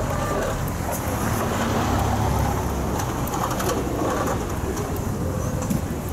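Footsteps crunch on packed snow.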